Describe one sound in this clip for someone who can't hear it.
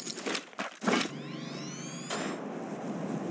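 A launch pad fires with a rising whoosh.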